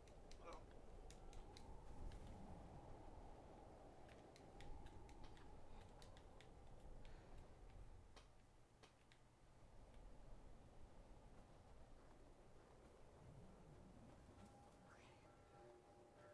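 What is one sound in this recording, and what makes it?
Feet crunch through deep snow.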